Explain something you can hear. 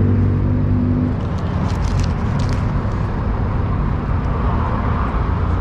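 A food truck's generator hums steadily nearby.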